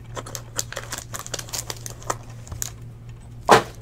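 A blade slices open plastic wrap.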